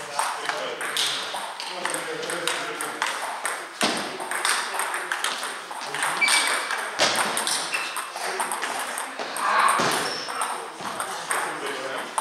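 Table tennis balls click off paddles and tables in an echoing hall.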